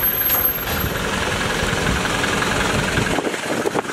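A truck engine idles nearby.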